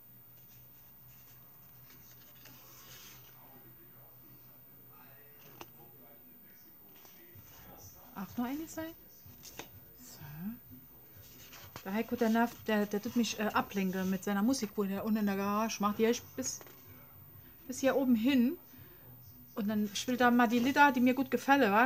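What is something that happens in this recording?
Sheets of paper rustle and slide as they are handled close by.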